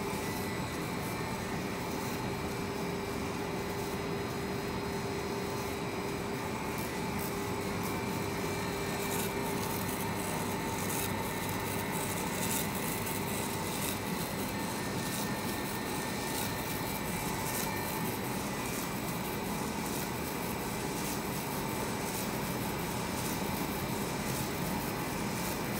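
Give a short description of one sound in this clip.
Rollers rattle as a strip of material feeds through a machine.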